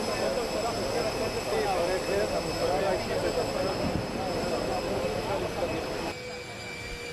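Men talk over one another in a crowd outdoors.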